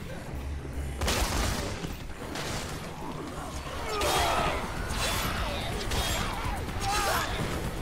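Heavy blows thud and slash against bodies.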